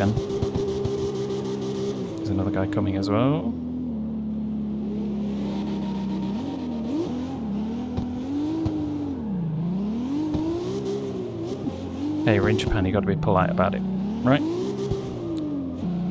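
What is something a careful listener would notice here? A car engine revs up and down throughout.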